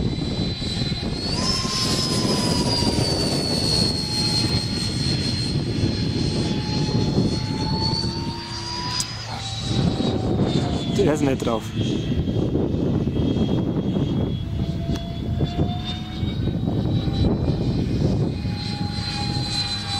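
A small propeller plane engine drones overhead, its pitch shifting as it passes.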